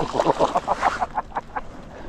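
A small fish splashes at the water's surface.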